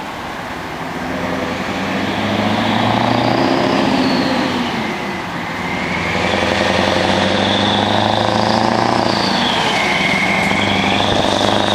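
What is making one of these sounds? A truck engine drones and grows louder as it approaches.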